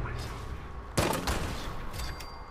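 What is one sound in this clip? A gun fires loudly in bursts.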